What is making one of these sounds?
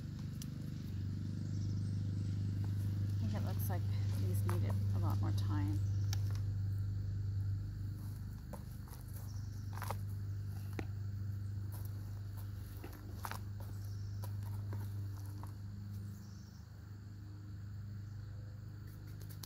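Carrots thump softly as they drop into a plastic tub.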